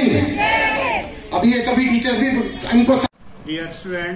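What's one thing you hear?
A crowd of men and women sing together loudly outdoors.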